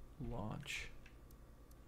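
A young man says a few words briefly and close into a microphone.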